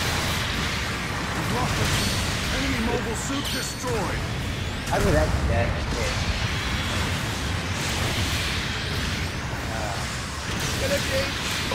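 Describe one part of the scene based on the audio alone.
Beam weapons fire in rapid bursts.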